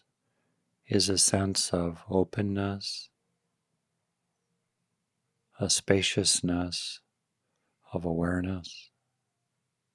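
An older man speaks calmly and softly into a close microphone, with long pauses.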